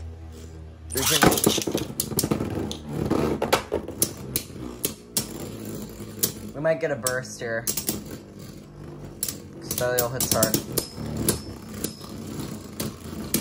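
Two spinning tops collide repeatedly with sharp clacks.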